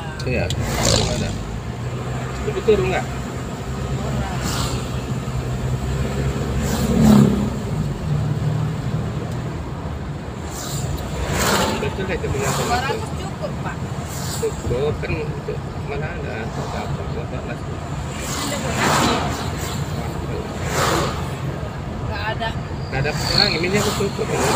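Other vehicles pass by on the road.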